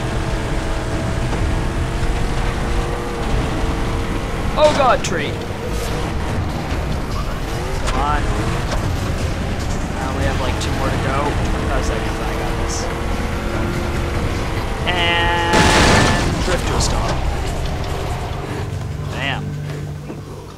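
An engine rumbles steadily as a vehicle drives over rough ground.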